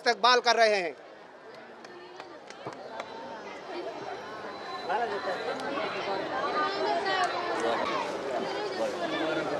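Voices of a crowd of men murmur and chatter nearby.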